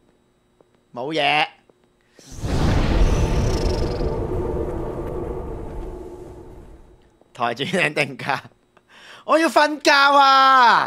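A young man talks excitedly close to a microphone.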